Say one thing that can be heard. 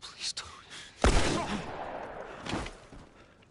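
A single gunshot rings out sharply and echoes.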